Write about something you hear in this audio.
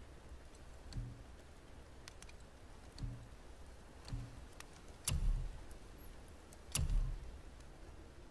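Soft menu clicks sound as options are chosen.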